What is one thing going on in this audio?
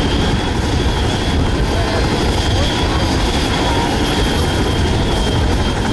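A helicopter's rotors thump steadily close by.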